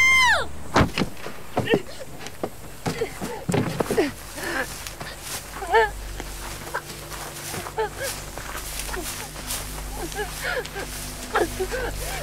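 A young woman gasps and pants heavily, close by.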